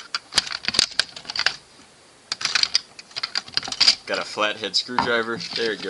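A plastic shell snaps as it is prised apart.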